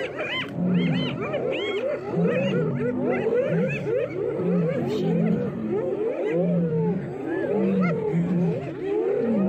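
A herd of wild animals grunts and calls on all sides.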